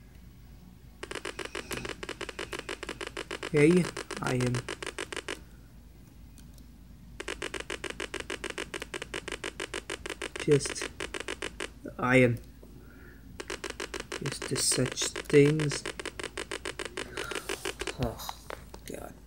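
Retro computer game music plays from small laptop speakers as a fast run of repeating electronic beeps.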